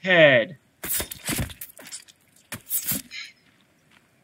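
A blade chops wetly into flesh with sharp blows.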